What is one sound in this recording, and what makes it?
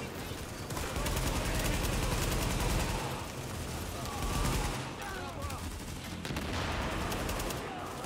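Rapid gunfire rattles in an echoing space.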